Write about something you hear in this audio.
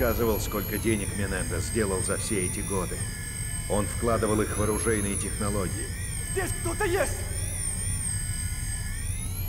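A small robot's motors whir as it turns and rolls.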